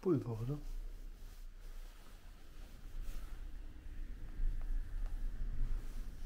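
Footsteps thud softly on carpet.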